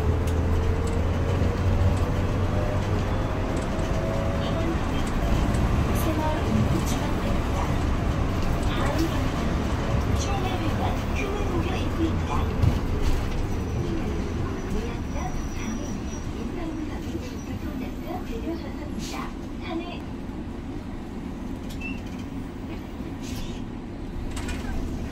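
Tyres roll on the road outside the bus.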